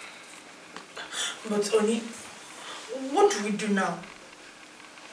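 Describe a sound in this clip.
A woman speaks with concern.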